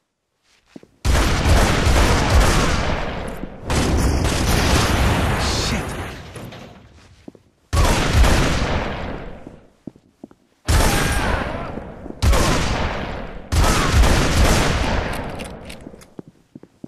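Gunfire blasts in bursts in a video game.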